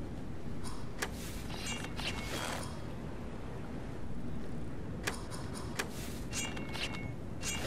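Game tiles chime softly as they vanish.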